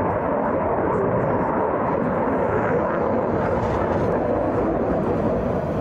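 A jet engine roars loudly in a steady rumble.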